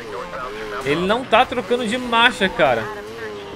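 Car tyres screech while drifting.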